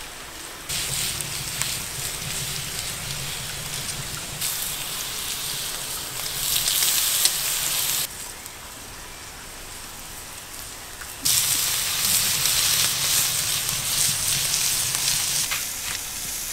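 Food sizzles loudly on a hot griddle.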